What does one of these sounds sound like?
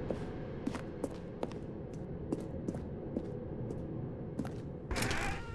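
Footsteps tap on hard stairs at a steady pace.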